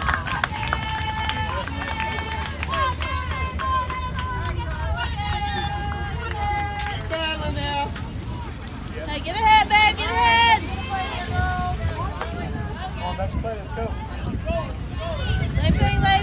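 Young women chant and cheer loudly nearby, outdoors.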